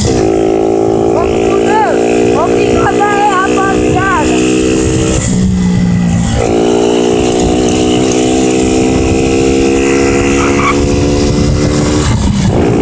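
A motorcycle engine hums steadily while riding, dipping briefly as it shifts gear.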